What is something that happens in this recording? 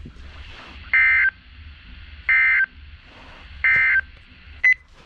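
A radio gives short, loud, high beeps.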